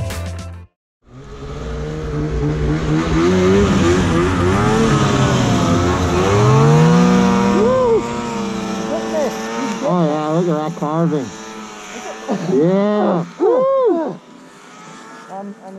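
A snowmobile engine revs up and down.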